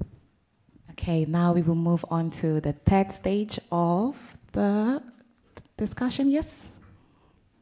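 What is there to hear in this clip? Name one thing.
A young woman speaks through a microphone in an echoing hall.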